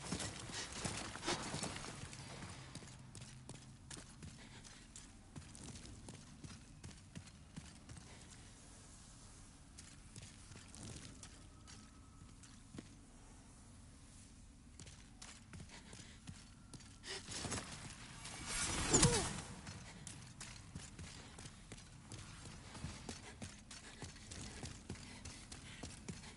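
Armoured footsteps clatter quickly on stone in an echoing passage.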